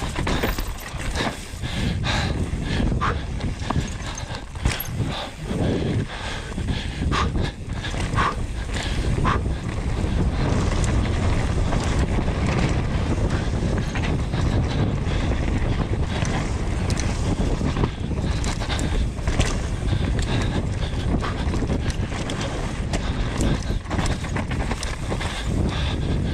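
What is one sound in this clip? Bike tyres rumble and skid over dirt and roots.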